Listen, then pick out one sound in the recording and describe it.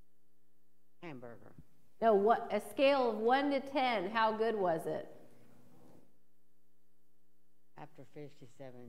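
An elderly woman speaks with animation through a microphone.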